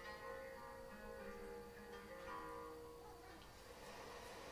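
Gentle game music plays from a television speaker.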